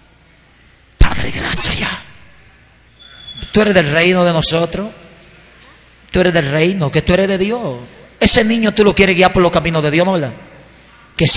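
A man preaches loudly and fervently through a microphone and loudspeaker, in an echoing hall.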